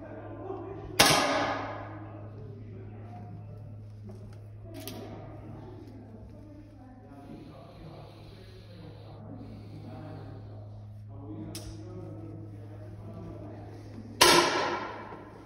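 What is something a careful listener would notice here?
A rifle fires a sharp shot that echoes through a large hall.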